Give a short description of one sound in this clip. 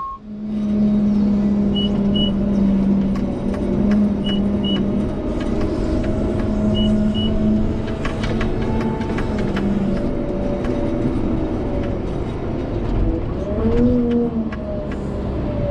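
A plow blade scrapes and pushes snow.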